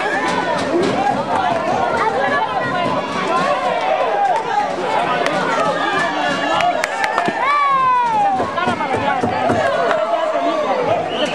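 A crowd of people shouts and chatters excitedly nearby, outdoors.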